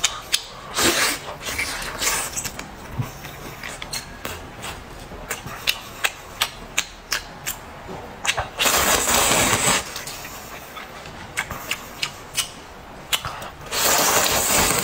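A man slurps noodles loudly up close.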